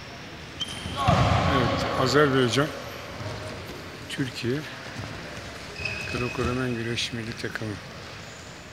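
Men shout and call out in an echoing hall.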